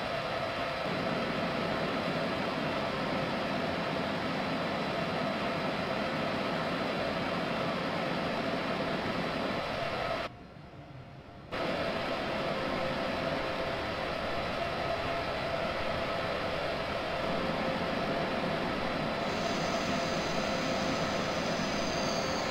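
An electric locomotive hums steadily as a train runs along the track.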